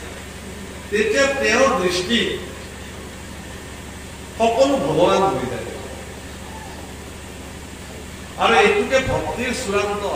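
A young man speaks with animation into a microphone, in short bursts with pauses.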